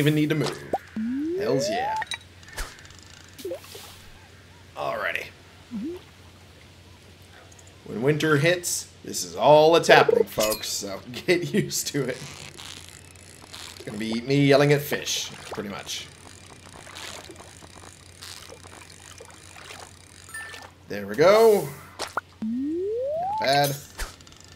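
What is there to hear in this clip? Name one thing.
A short rising tone sounds as a fish is landed.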